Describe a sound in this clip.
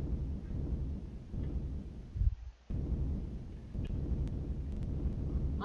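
A tool rumbles with a deep, steady throb.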